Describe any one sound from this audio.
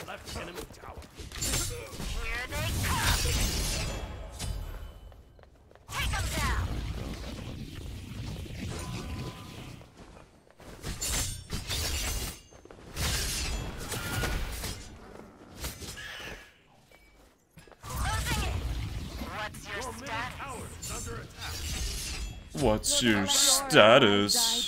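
Game sound effects of spells and blows burst out in quick bursts.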